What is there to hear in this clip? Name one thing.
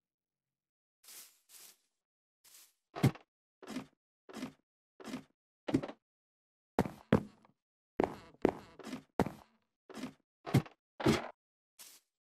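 Footsteps thud on wooden planks and a ladder.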